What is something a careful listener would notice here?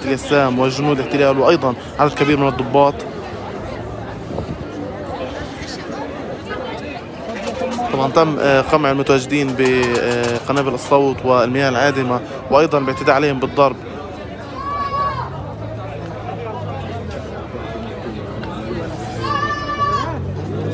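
A crowd of men and women talk and shout nearby outdoors.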